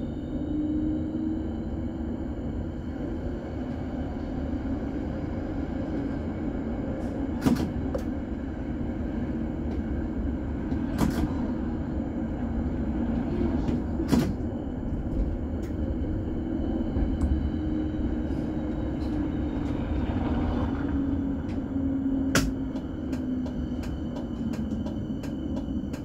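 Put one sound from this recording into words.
A tram rolls steadily along its rails with a low rumbling hum.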